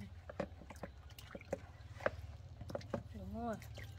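Water splashes as small hands wash in a basin.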